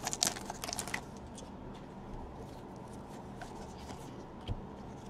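Hands shuffle through trading cards.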